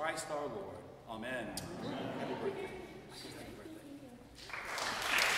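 An elderly man speaks calmly and close by in an echoing hall.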